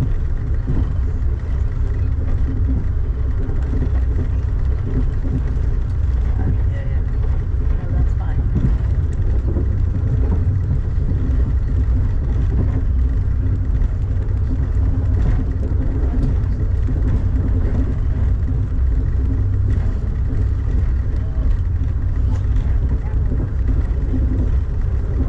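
Wheels clatter on rail joints.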